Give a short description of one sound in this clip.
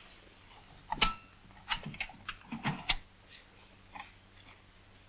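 A metal lid clanks and rattles against a pot nearby.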